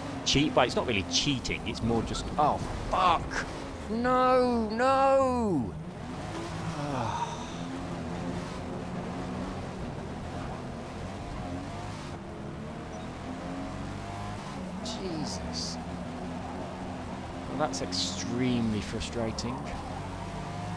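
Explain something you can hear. A car engine roars, its pitch rising and falling as it revs through the gears.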